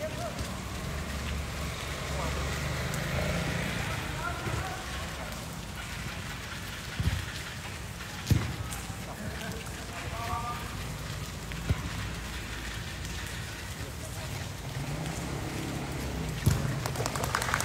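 Young men call out to each other from a distance.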